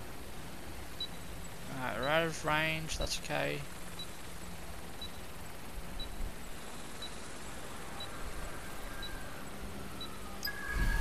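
A warning beeps repeatedly at an even pace.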